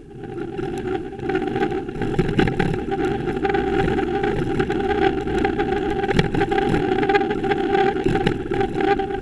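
Wind buffets loudly against a bicycle as it rides along a road.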